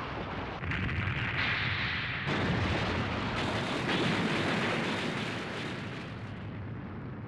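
Stone walls and a ceiling crumble and crash down with a loud, deep rumble.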